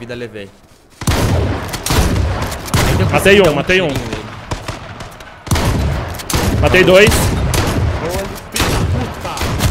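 A shotgun fires loud blasts several times.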